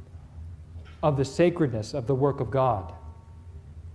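A man speaks calmly and clearly into a microphone.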